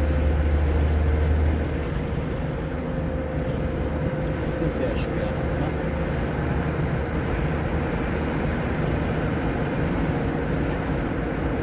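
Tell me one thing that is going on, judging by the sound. Tyres roll on smooth pavement with a steady rumble.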